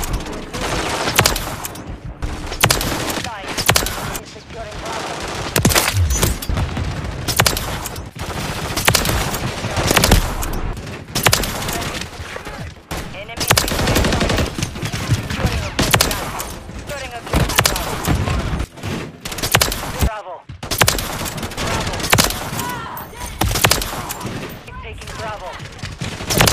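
Sniper rifle shots crack out one at a time, sharp and loud.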